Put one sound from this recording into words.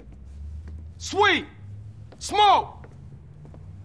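A young man calls out loudly from close by.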